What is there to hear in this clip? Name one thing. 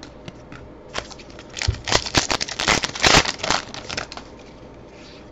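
A foil wrapper crinkles and tears.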